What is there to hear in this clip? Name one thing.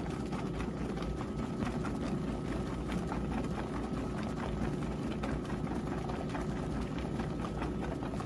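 Soapy water sloshes and splashes steadily in a washing machine drum.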